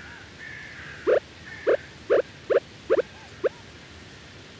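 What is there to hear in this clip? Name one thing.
Short soft footsteps patter in a quick run of steps.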